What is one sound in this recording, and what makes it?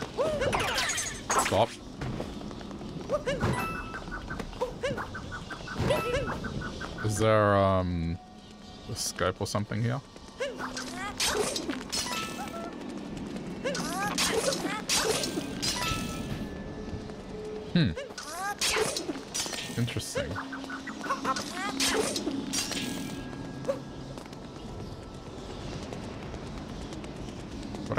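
Video game music plays with chimes and bright tones.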